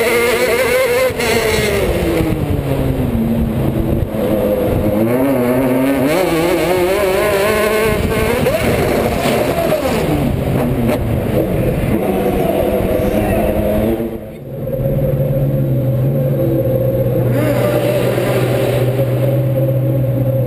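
A race car engine roars close by, revving up and down as it shifts gears.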